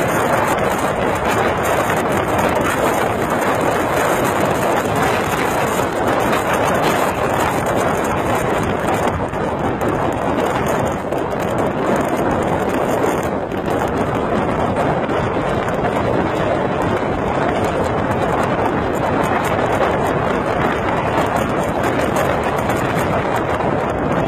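Road noise from a moving car rushes steadily throughout.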